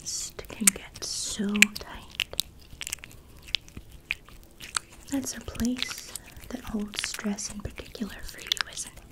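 A woman whispers softly close to a microphone.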